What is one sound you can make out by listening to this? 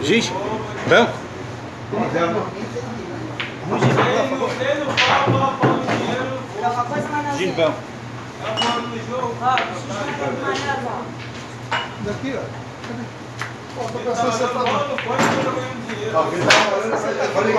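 Pool balls clack together on a table.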